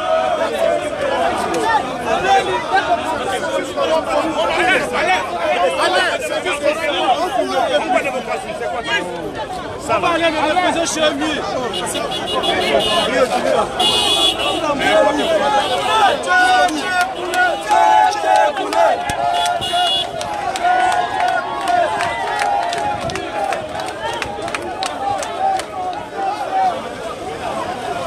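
A large crowd of men and women shouts and chants loudly outdoors.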